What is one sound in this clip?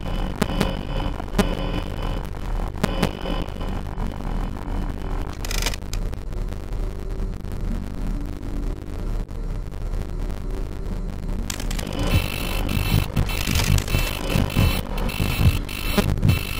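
Electronic static hisses and crackles.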